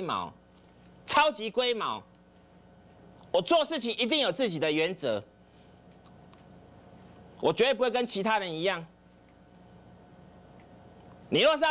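A middle-aged man speaks emphatically into a close microphone, in short bursts.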